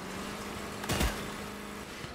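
A vehicle crashes with a heavy metal thud.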